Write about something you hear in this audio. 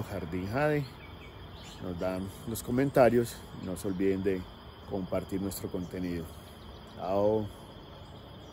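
A middle-aged man talks close up with animation.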